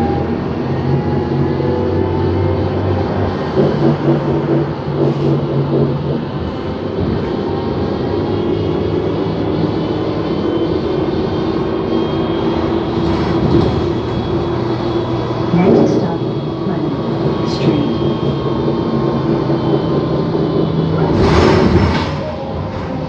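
A bus engine hums steadily from inside the bus as it drives along.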